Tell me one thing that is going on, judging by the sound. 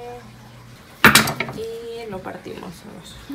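A knife taps against bread.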